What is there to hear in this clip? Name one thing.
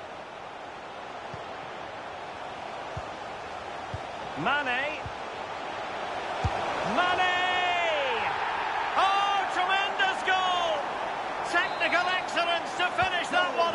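A stadium crowd roars steadily and grows louder.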